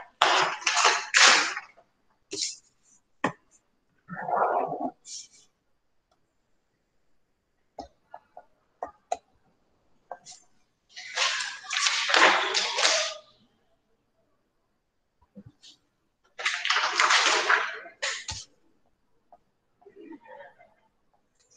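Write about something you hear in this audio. A young woman speaks calmly into a computer microphone, in short bursts with pauses.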